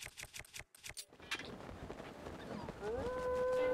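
Wind rushes past a paraglider in flight.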